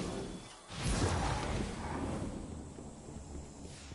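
A loud energy blast booms and rumbles away.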